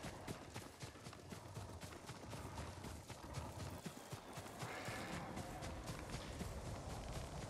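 Footsteps run quickly through rustling grass.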